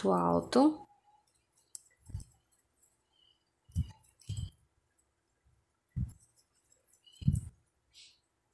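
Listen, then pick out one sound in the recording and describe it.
A crochet hook softly clicks against yarn.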